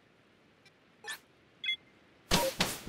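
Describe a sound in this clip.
A chime sounds as a choice is confirmed.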